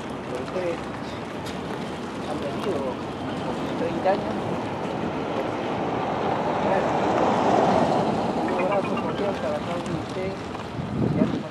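Several men murmur and talk among themselves nearby.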